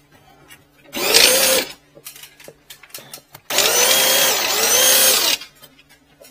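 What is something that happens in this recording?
A cordless drill whirs, driving a drain-cleaning drum.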